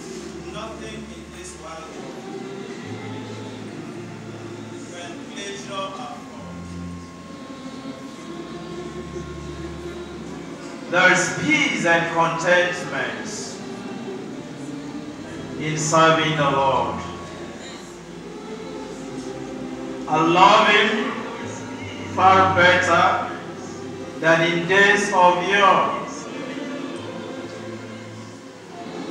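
A choir of women and men sings together in a large echoing hall.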